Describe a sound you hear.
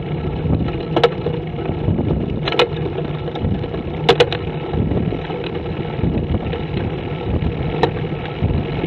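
Wheels clack sharply over bumps in the road now and then.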